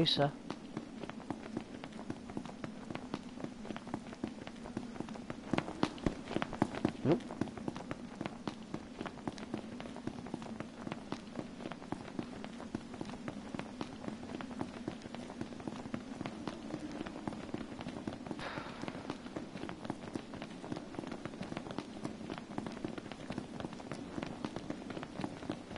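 Footsteps patter quickly on a paved road.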